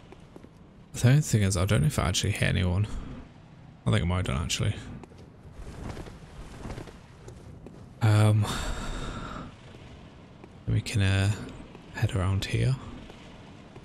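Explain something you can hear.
A man talks into a close microphone with animation, in short bursts.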